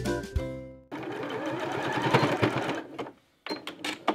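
A sewing machine runs, stitching quickly.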